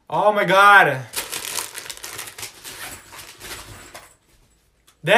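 A crinkly snack bag rustles.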